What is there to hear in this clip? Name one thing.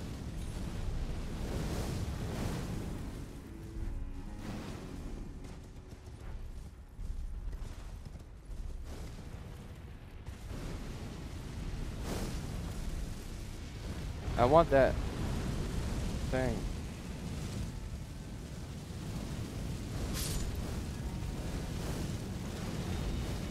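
A horse gallops.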